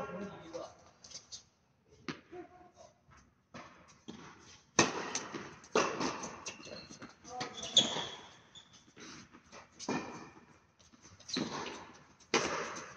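Tennis balls are struck by rackets with sharp pops that echo in a large hall.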